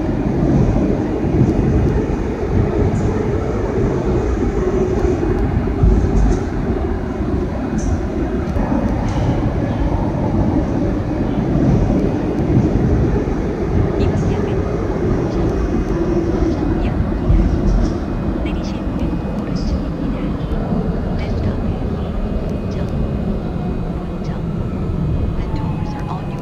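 A subway train rumbles steadily through a tunnel.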